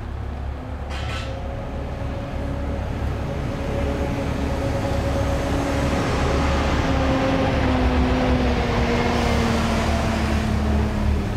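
A coach's engine whines as it moves.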